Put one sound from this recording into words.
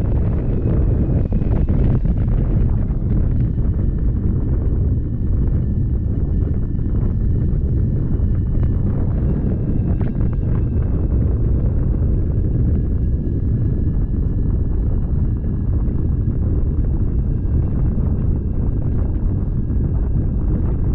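Strong wind rushes and buffets steadily, as if in flight high outdoors.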